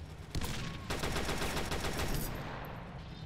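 A submachine gun fires a rapid burst of shots.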